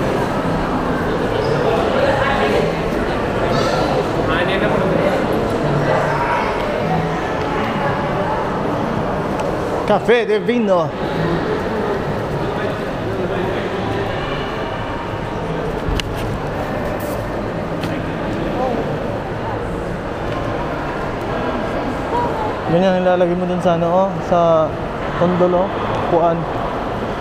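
Many people talk at a distance in a large echoing hall.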